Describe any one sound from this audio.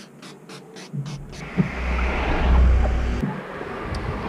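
A cloth rubs and squeaks across a car windscreen close by.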